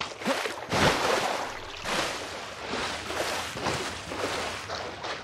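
Water splashes and sloshes with swimming strokes.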